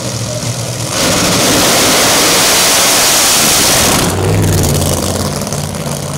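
Drag racing cars launch with a deafening roar and speed away.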